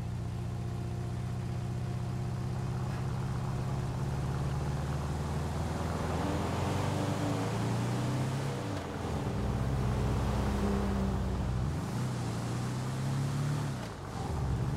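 A truck engine rumbles steadily, dropping and rising again as gears shift.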